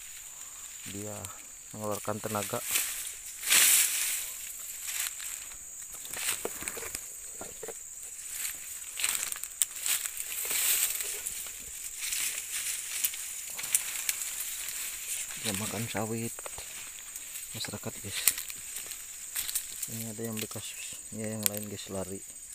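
Footsteps crunch through dry leaves and undergrowth.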